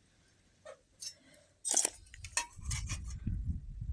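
A thin metal plate clanks and scrapes as it is moved.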